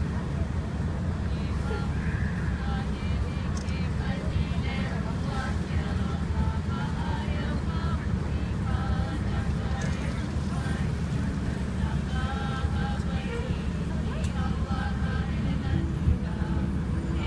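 A crowd of adults murmurs softly in the background.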